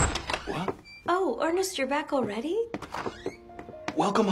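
A young woman speaks brightly.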